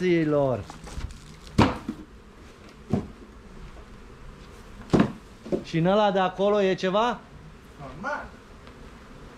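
An elderly man speaks loudly in short bursts, close by.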